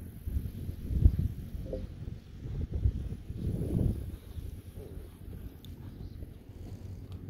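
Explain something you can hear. A horse trots on sand.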